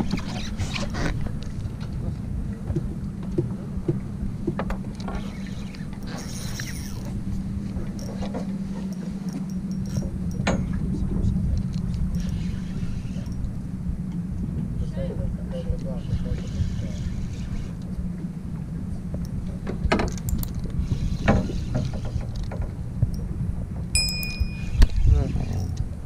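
A fishing reel clicks and whirs as it is wound.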